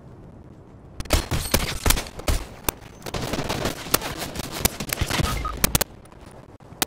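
Gunshots crack in quick, sharp bursts.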